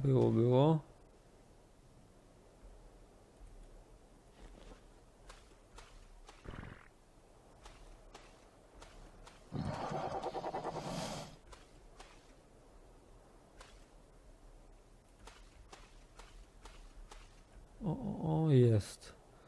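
Shallow water laps gently at a shore.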